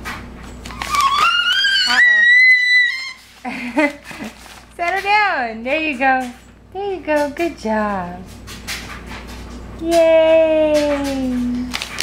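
A baby squeals and babbles up close.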